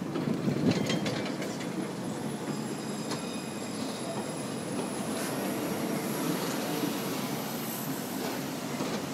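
A tram's motor whines steadily as it passes.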